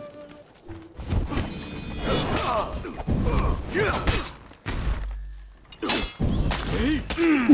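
Metal swords clash and clang in a fight.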